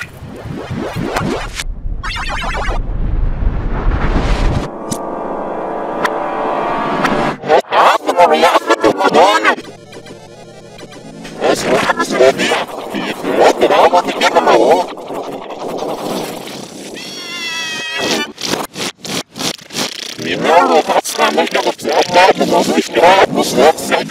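Chiptune video game music plays.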